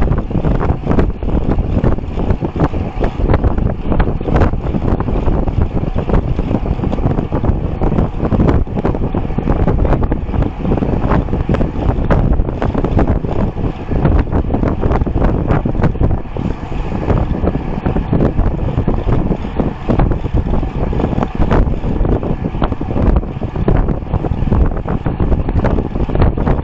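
Wind roars loudly against a moving bicycle.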